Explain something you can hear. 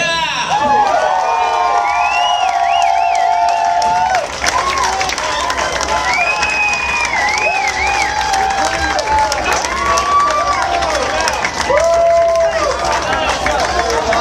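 Audience members whistle loudly and shrilly.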